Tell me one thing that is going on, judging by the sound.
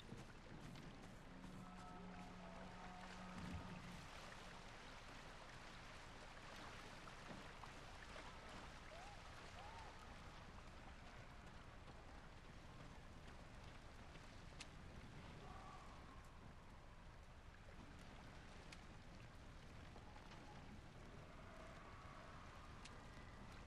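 Footsteps crunch softly on gravel and grass.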